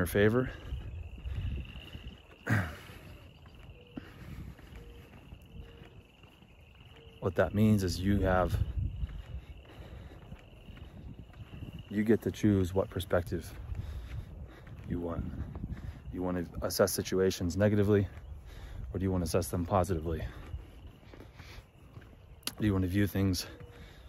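A young man talks calmly and close by, in bursts with pauses.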